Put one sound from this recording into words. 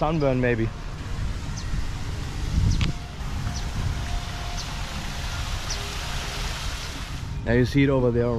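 Water splashes steadily from a fountain.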